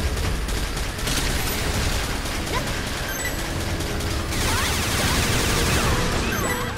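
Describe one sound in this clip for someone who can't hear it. Laser beams fire with a sharp electronic zap.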